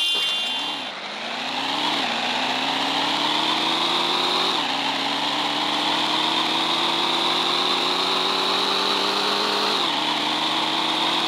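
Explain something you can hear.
A racing game's sports car engine revs up through the gears.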